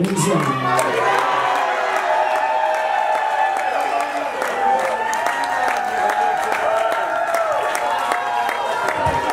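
Loud live music plays in a hall.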